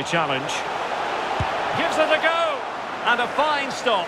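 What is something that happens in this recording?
A large crowd roars and cheers in a stadium.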